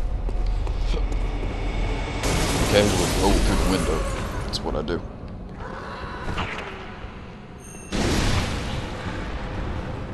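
A heavy blade swooshes through the air.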